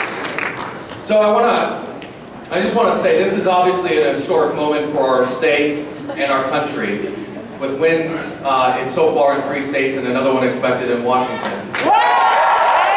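A man speaks to the crowd through loudspeakers.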